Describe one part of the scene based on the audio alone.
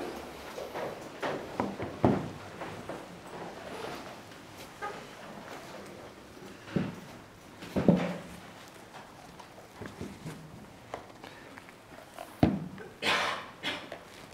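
A tablet case taps and knocks on a table.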